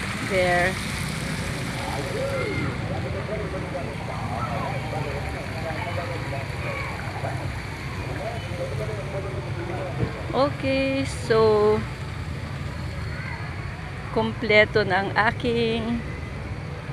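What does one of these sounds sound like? A woman laughs and talks loudly close by.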